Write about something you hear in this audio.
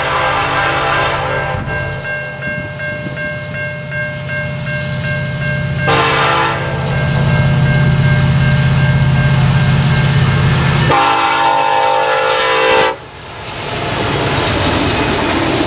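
Diesel freight locomotives rumble as they approach and pass close by.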